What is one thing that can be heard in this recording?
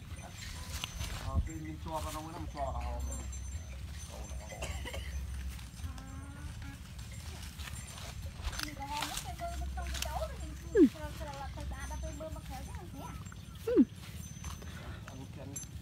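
A cow tears and munches grass close by.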